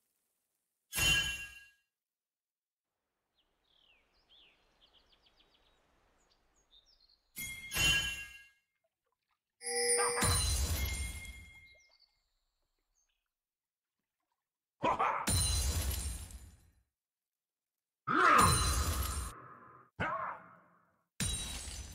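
Bursts of spell blasts and weapon hits ring out in a video game battle.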